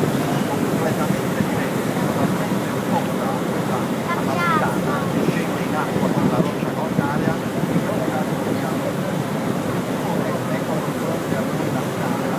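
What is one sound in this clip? A middle-aged man talks calmly into a microphone outdoors in wind.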